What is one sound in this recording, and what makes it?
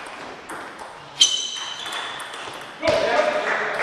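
A table tennis ball is knocked back and forth across a table with sharp clicks.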